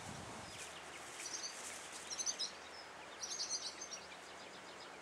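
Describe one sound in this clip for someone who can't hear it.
Chicks peep in short high bursts.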